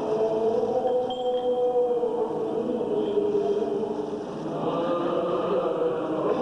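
A man chants in a slow, sustained voice, heard through a microphone.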